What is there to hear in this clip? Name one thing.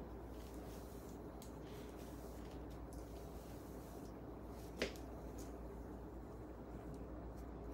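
A comb swishes softly through long hair.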